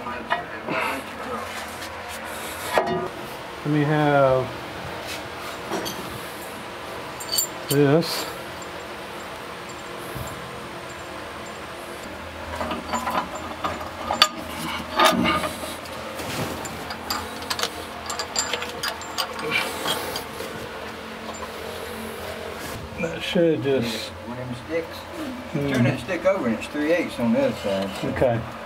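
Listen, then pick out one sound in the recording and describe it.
An older man talks nearby in a relaxed voice.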